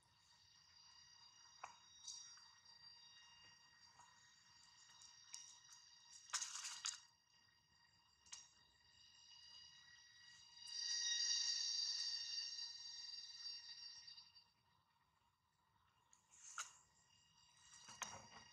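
Leaves rustle as a monkey tugs at a small plant.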